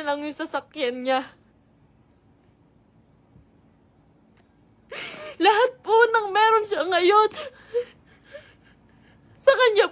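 A young woman sobs and speaks in a tearful, wavering voice close by.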